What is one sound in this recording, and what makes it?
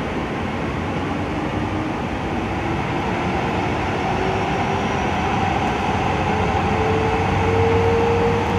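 A train's motor whines, rising in pitch as the train speeds up.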